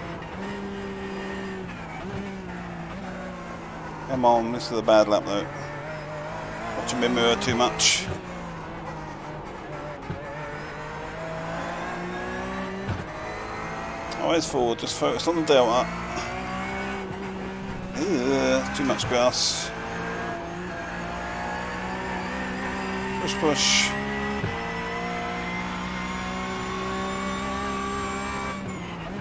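A racing car engine drones steadily, its pitch rising and falling with gear changes.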